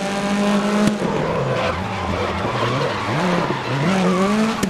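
Tyres squeal on tarmac through a corner.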